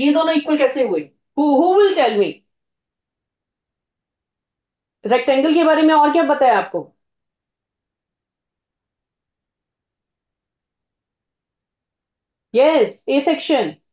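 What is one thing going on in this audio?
A woman speaks calmly into a microphone, in short phrases with pauses.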